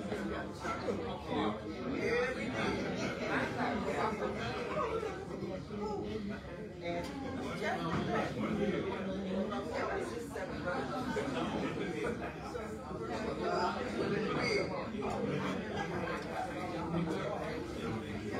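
Many people chatter quietly in the background.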